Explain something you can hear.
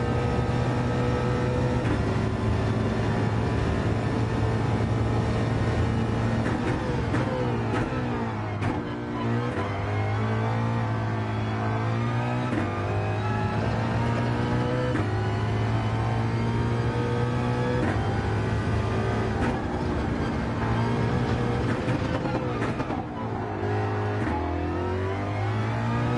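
A racing car engine roars, climbing in pitch and dropping sharply at each gear change.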